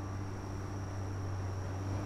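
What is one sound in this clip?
A young woman speaks quietly nearby.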